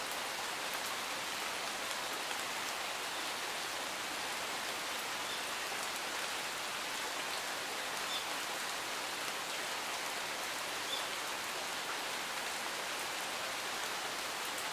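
Steady rain falls and patters on leaves and gravel outdoors.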